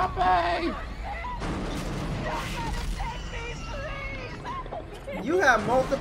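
A woman cries out in panic, pleading.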